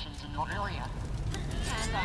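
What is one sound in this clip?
Magic fire bursts with a roaring whoosh.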